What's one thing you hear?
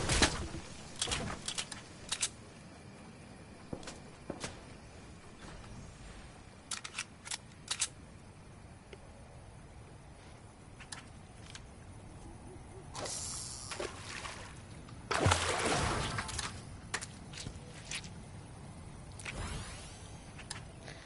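Wooden walls snap into place with quick clacks.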